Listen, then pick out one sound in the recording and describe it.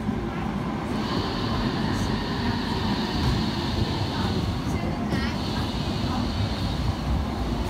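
A tram motor whines steadily.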